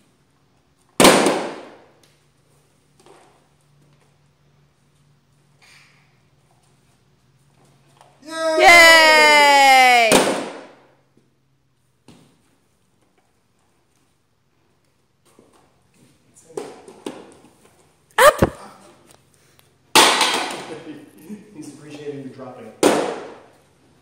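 A light barbell thuds and clatters onto a wooden floor.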